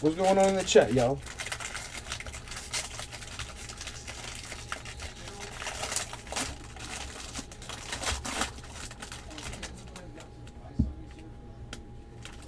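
Cards are handled and shuffle softly.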